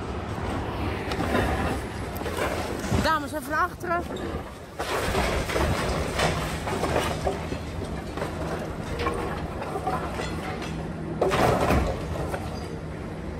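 Concrete crunches and rubble crashes down as an excavator tears at a building.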